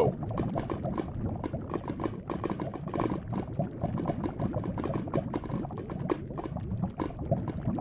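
Lava bubbles and pops with a steady crackle.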